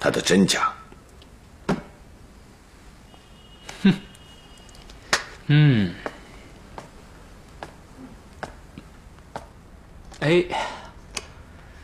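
A man speaks briefly in short bursts, close by.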